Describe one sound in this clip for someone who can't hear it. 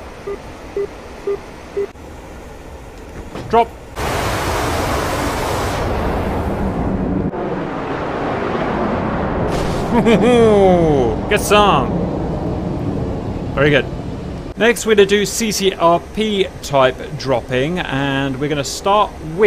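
A jet engine roars steadily.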